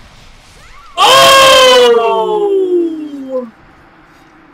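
A young man screams loudly into a microphone, his cry falling in pitch.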